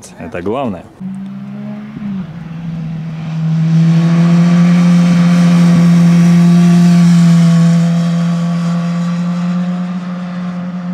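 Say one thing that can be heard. A motorcycle engine roars as the motorcycle approaches, leans through a bend and rides past.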